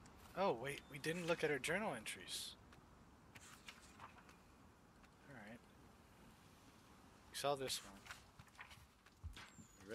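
Notebook pages rustle as they turn.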